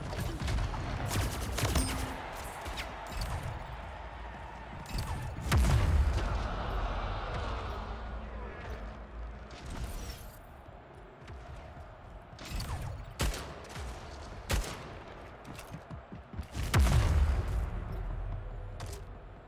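Video game gunfire crackles in short bursts.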